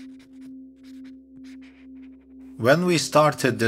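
A pencil scratches across paper.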